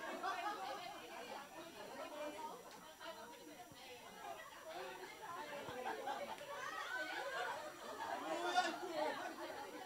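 Many women chatter and laugh together nearby.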